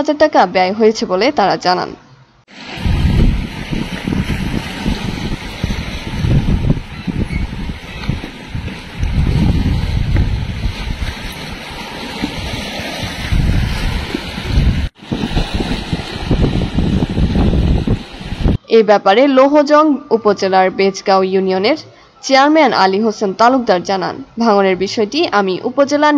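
River water flows along a bank.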